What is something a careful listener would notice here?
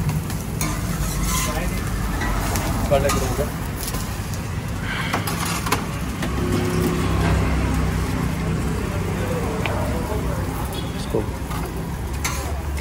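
A gas burner roars steadily under a griddle.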